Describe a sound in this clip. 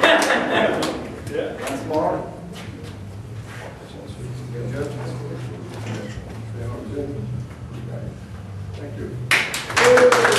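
A man speaks calmly to a group.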